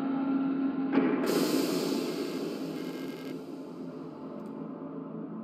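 A rushing whoosh sweeps past while sliding down a shaft, then fades.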